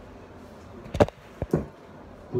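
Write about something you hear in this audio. A hand knocks and bumps against a phone close by.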